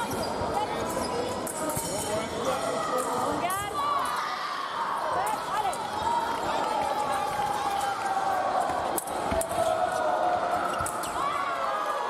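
A crowd murmurs in the background of a large hall.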